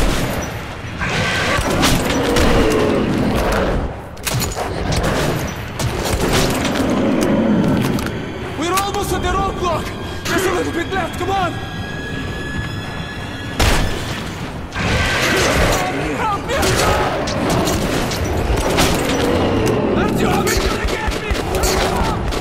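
A monster roars and snarls up close.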